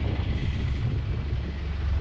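A bus engine idles nearby with a low rumble.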